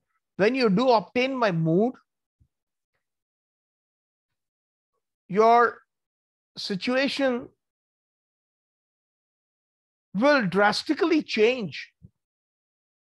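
A middle-aged man speaks calmly and expressively into a microphone, in short phrases with pauses.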